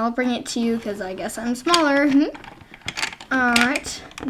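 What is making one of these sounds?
A small plastic toy lid clicks and taps as it is handled.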